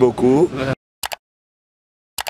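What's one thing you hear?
A mouse click sounds twice quickly.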